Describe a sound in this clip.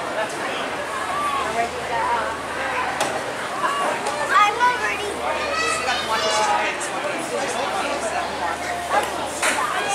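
A man calls out instructions.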